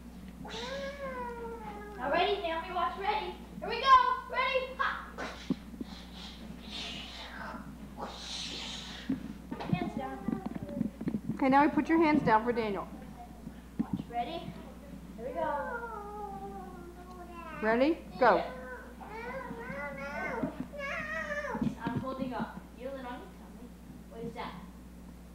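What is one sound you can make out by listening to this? A little girl squeals and giggles.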